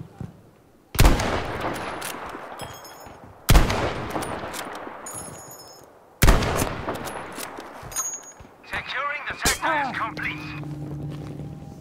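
A rifle fires loud shots that echo and roll away.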